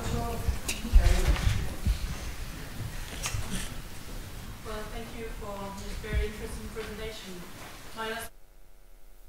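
A man speaks into a microphone in a large echoing hall.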